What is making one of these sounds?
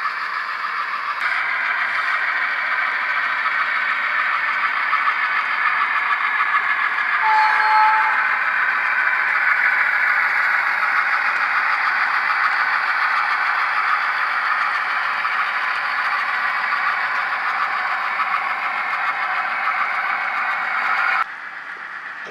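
Model diesel locomotives hum and rumble steadily along the track.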